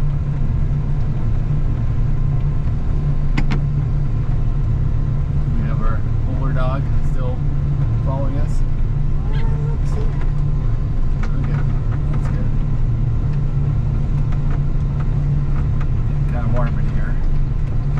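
A heavy machine's diesel engine rumbles steadily up close.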